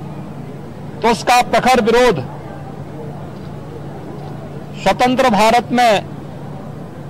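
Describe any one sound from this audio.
A middle-aged man speaks in short phrases into microphones through a face mask.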